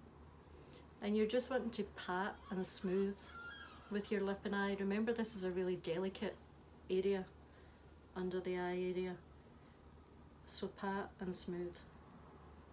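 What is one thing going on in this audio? A woman speaks calmly and clearly close by, in short phrases.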